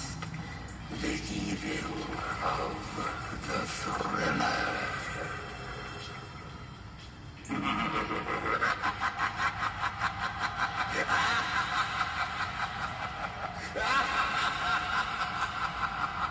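A fog machine hisses as it blows out bursts of vapour.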